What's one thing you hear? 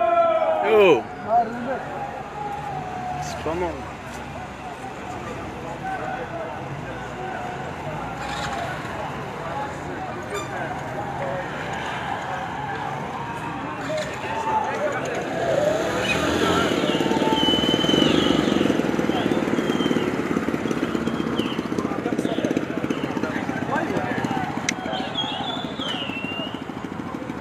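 A crowd of young men shouts outdoors.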